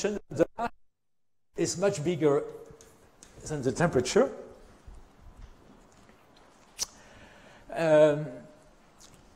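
An elderly man lectures calmly.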